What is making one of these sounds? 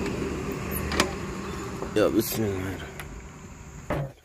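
A truck door latch clicks open.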